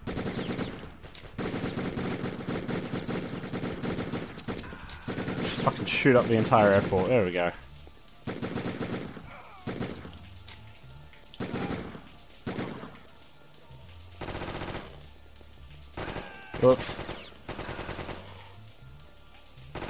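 Gunshots fire in short, quick bursts.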